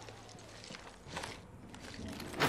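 A metal door slides open.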